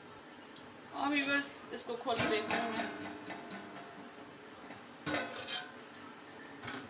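A metal pot lid clanks as it is lifted off.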